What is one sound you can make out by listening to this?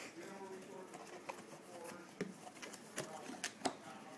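Cardboard scrapes and thumps as a box is handled.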